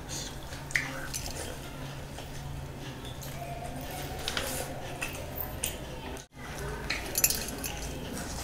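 A man chews food loudly and wetly close to a microphone.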